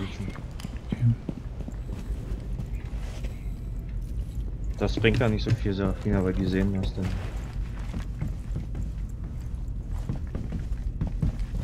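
Footsteps thud softly on a hard floor.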